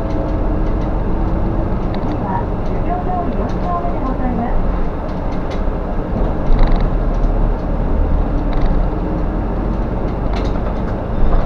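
A bus engine hums steadily from inside the cab while driving.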